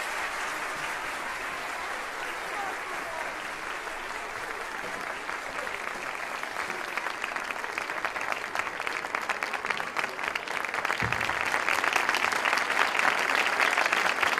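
An audience applauds in a large hall, the clapping growing louder.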